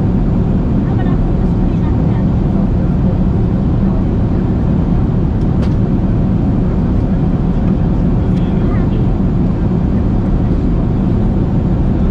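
Jet engines roar with a steady, deep drone inside an airliner cabin.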